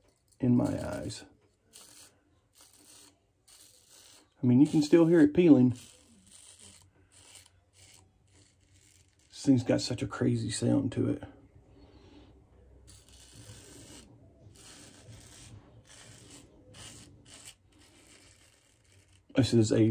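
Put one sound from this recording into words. A razor scrapes through stubble in short strokes.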